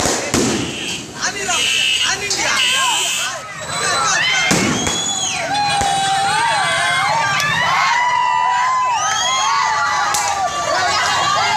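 A crowd of men shouts and calls out nearby.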